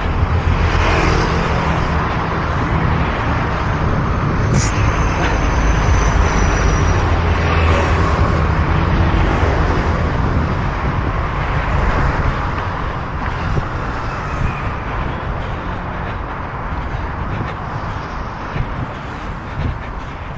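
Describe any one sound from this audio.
Wind rushes and buffets steadily outdoors.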